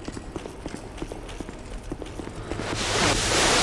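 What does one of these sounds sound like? Armoured footsteps clank quickly on stone steps.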